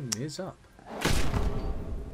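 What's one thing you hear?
A heavy blow strikes with a loud crunch.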